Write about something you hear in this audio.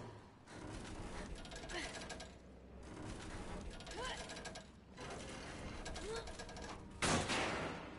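A heavy metal bar scrapes and creaks as it is forced.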